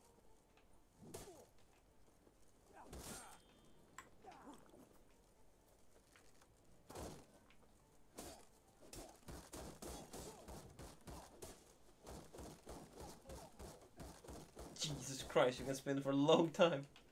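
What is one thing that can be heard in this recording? Swords clash and clang against shields in quick blows.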